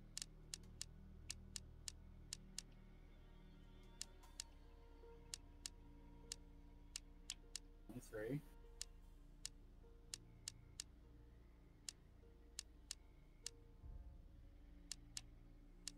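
Short, soft menu clicks tick again and again as a selection moves.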